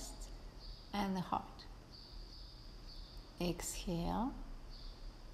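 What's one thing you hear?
A woman speaks calmly and briefly.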